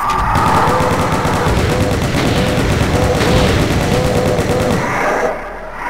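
A rapid-fire gun fires a quick burst.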